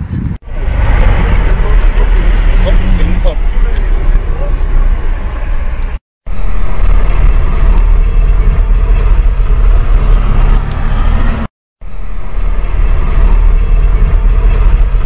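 Road noise rumbles steadily from inside a moving car.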